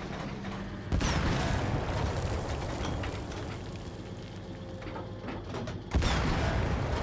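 A tank cannon fires with heavy booming blasts.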